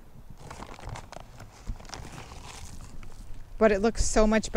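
Dry mulch rustles under gloved hands.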